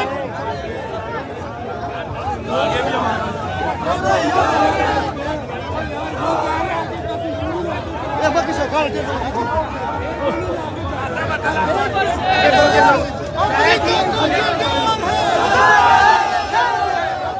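Many men shout excitedly close by.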